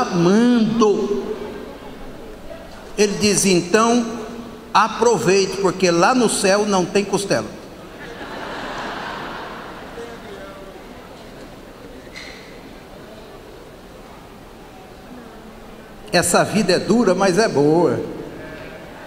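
A man preaches with animation through a microphone, in short loud bursts.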